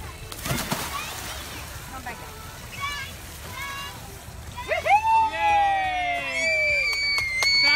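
Water splashes as a young boy swims.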